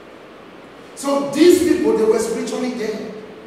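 A man speaks loudly and with passion into a microphone in an echoing hall.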